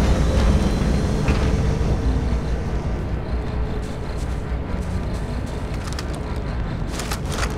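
An alien aircraft hovers nearby with a deep, droning engine hum.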